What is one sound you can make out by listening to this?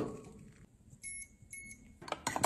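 Appliance buttons beep.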